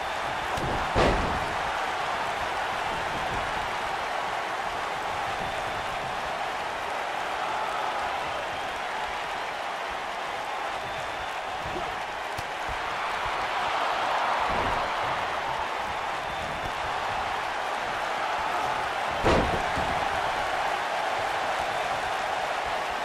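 A large arena crowd cheers.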